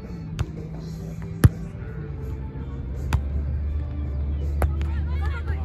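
A volleyball thumps off hands.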